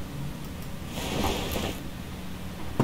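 A car door comes off with a rushing metal clatter.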